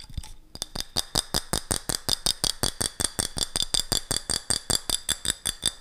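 Fingernails tap rapidly on a glass jar close to a microphone, with a bright ringing clink.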